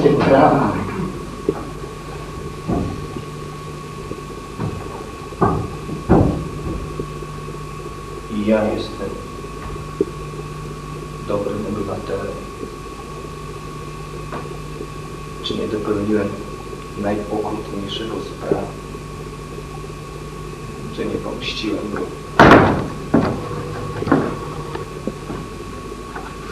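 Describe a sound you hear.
A man speaks in short bursts, heard from a distance.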